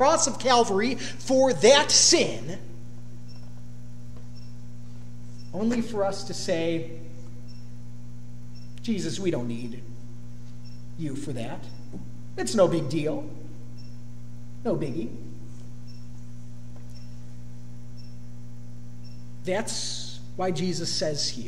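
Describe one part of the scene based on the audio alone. A young man speaks slowly, with long pauses, through a microphone in an echoing hall.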